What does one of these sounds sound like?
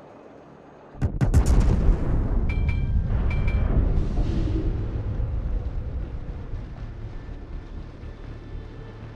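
Heavy naval guns fire with a deep, booming blast that rumbles away.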